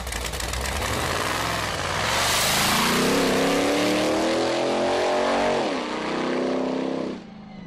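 A drag racing engine roars loudly and revs up as the car launches and speeds away.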